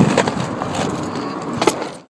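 Skateboard wheels roll and clack on concrete.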